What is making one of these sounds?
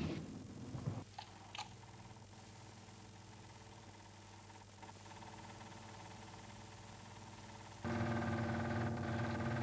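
A film projector whirs steadily.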